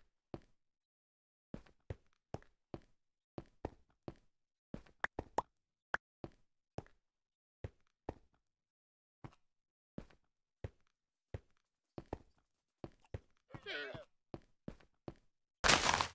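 Footsteps tap on stone at a steady walking pace.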